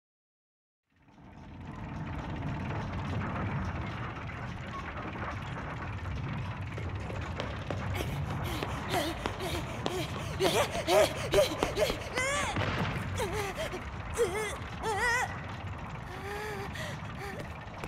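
Large gears grind and clank steadily.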